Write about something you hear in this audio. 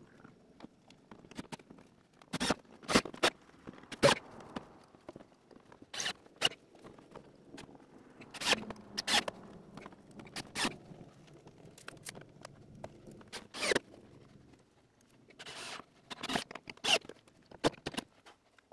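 A tool knocks and clicks against a wooden frame.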